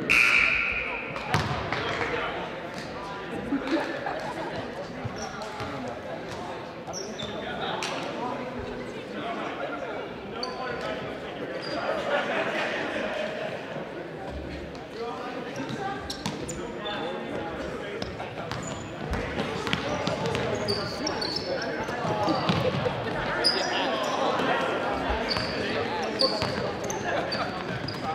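A crowd of spectators chatters and cheers in an echoing gym.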